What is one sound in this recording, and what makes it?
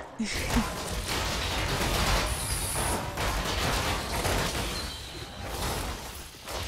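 Magical blasts and hits crackle and boom in a fast battle.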